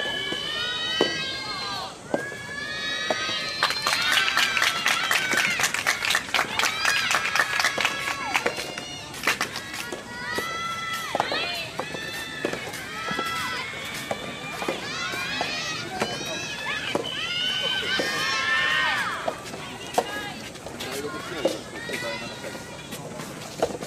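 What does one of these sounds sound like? A tennis ball is struck with a racket with sharp pops.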